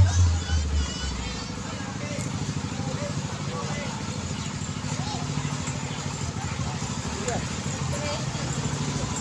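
A motorbike engine hums as the motorbike rides slowly past.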